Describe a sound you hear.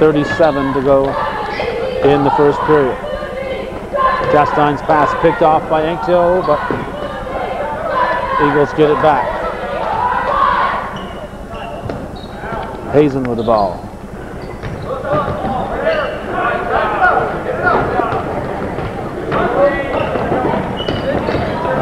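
A basketball thumps as it bounces on a hardwood floor.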